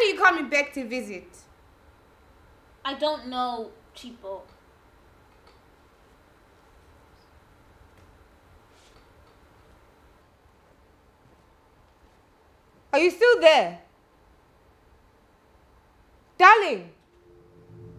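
A woman calls out loudly, with long pauses.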